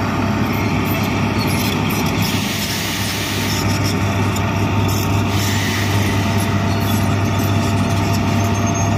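A diesel bulldozer engine rumbles while pushing dirt.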